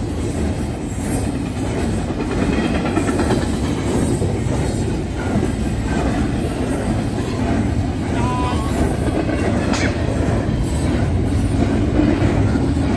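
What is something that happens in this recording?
A long freight train rumbles steadily past up close.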